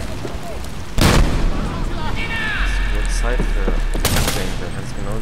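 Gunshots bang loudly, one at a time.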